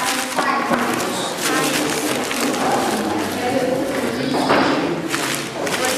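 Crumpled paper wrapping rustles as it is handled.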